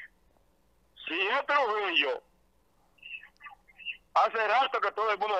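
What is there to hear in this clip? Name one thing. A middle-aged man talks on a phone close to a microphone, speaking in short bursts.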